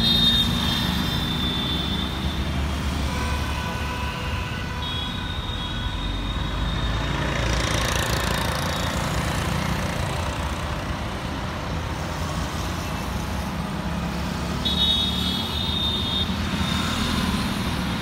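Vehicle horns honk.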